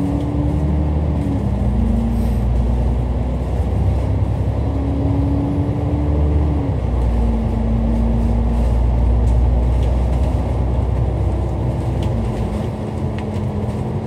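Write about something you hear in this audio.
A bus engine rumbles steadily and shifts pitch as it drives.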